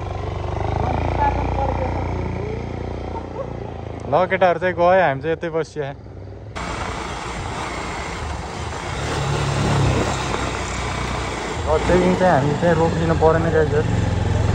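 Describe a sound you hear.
A motorcycle engine runs and rumbles steadily.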